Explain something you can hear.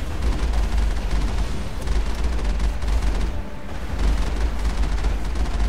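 A cannon fires in repeated blasts.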